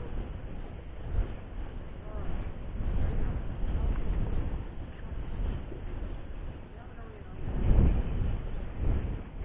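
A nylon cast net rustles as hands gather it.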